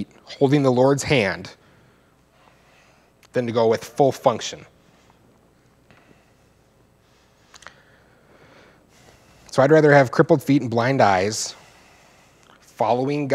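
A man speaks calmly into a microphone in bursts with pauses.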